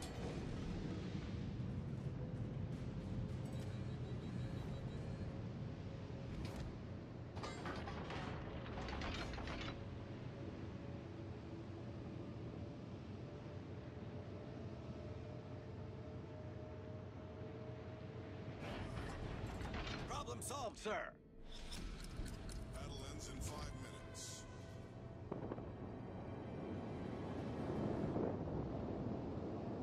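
Water rushes and splashes along a ship's hull.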